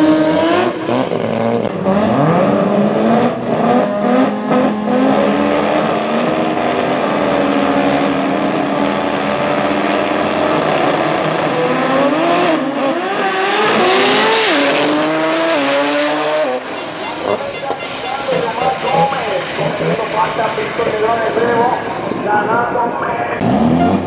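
A race car engine roars and revs hard.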